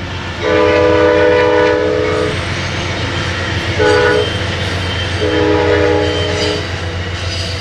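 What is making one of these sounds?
A train horn blows loud, long blasts.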